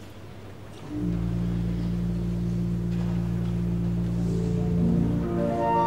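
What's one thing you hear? A pipe organ plays sustained chords.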